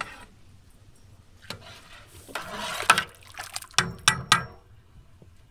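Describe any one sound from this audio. A spoon stirs and knocks against a metal pot.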